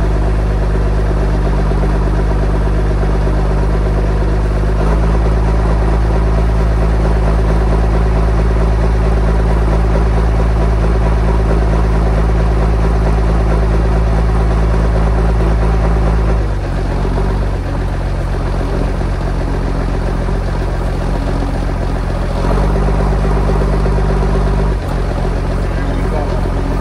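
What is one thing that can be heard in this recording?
A heavy diesel engine rumbles loudly and steadily, rising and falling in pitch as the machine works.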